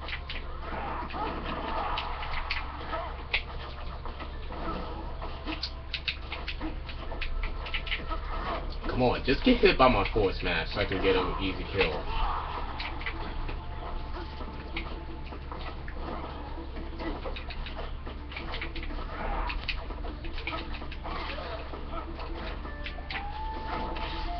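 Upbeat video game music plays through a television speaker.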